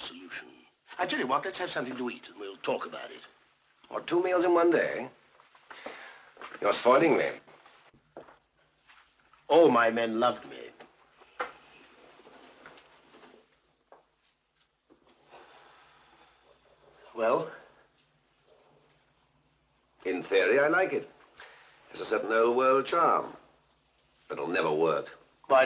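A second middle-aged man answers in a conversational tone.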